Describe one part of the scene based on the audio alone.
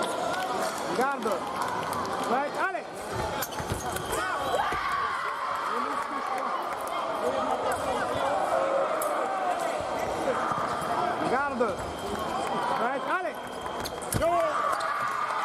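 Sports shoes squeak sharply on the floor.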